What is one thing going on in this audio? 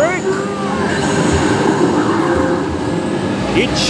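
A loud explosion effect booms from an arcade game.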